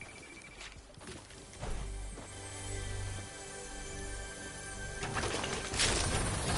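A treasure chest hums with a shimmering tone.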